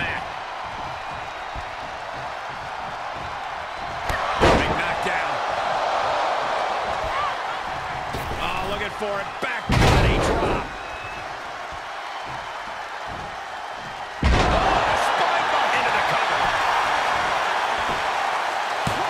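A large arena crowd cheers steadily.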